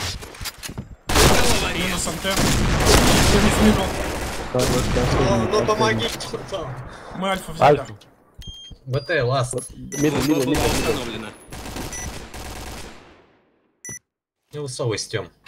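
Rapid rifle shots fire in quick bursts.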